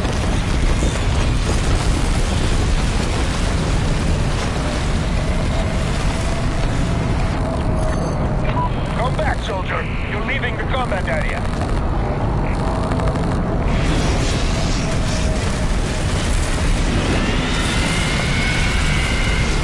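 Strong wind roars and gusts steadily.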